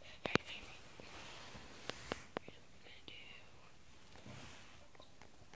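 A young boy whispers softly, very close by.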